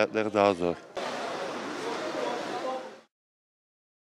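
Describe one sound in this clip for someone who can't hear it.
Plastic bags rustle.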